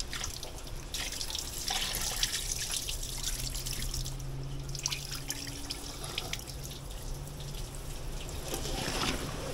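Hands squelch and rub through wet raw meat in a metal bowl.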